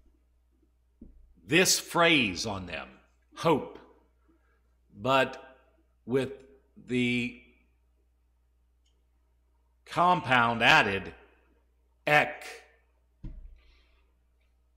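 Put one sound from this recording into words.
A man speaks calmly and deliberately through a microphone, with pauses between phrases.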